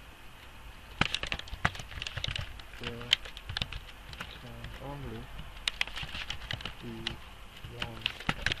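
Keys click on a computer keyboard during typing.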